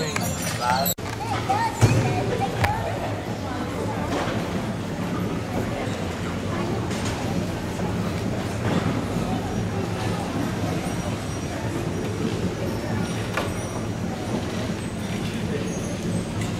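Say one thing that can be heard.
Wheeled percussion carts roll across a gym floor in a large echoing hall.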